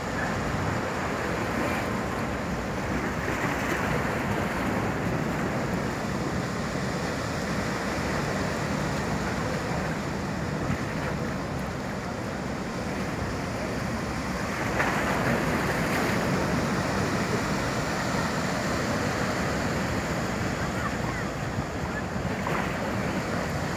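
Churned water rushes and splashes against a quay.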